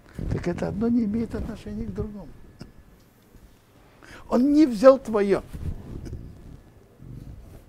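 An elderly man speaks calmly and warmly into a close microphone, with pauses.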